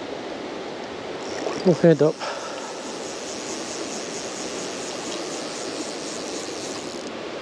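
A river flows and ripples steadily close by.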